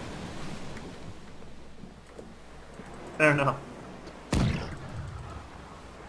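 A wooden ramrod thuds into a cannon barrel.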